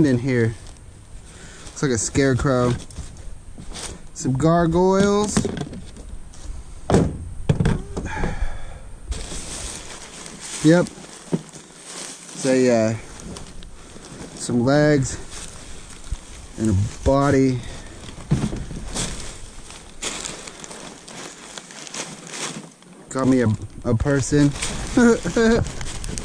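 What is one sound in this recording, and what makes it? Fabric rustles as clothes are handled and stuffed into a plastic tub.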